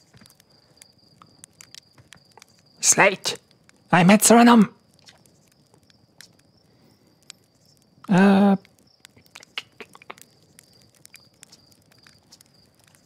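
A campfire crackles and pops softly.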